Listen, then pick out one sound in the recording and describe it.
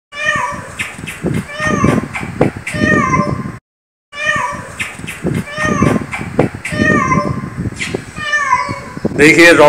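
A cat meows repeatedly nearby.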